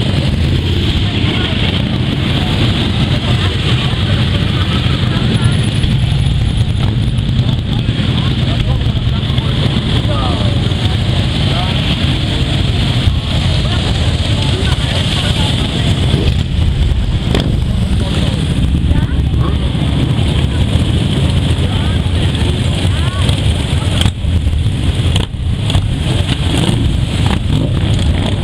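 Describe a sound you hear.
Many motorcycle engines rumble and roar steadily as they ride past close by.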